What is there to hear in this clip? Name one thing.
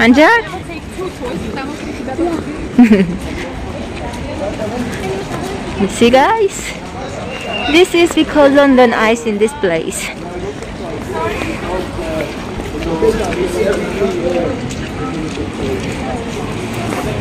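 Footsteps patter on a wet pavement.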